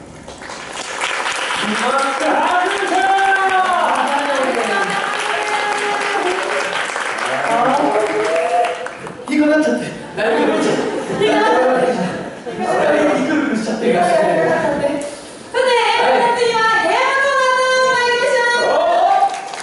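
Young actors speak loudly and with animation in an echoing hall.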